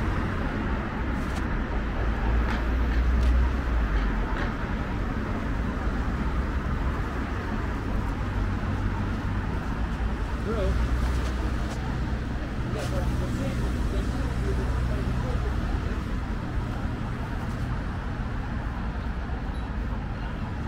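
Traffic rumbles steadily along a nearby street outdoors.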